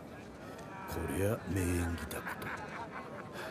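A young man speaks with a dry, mocking tone.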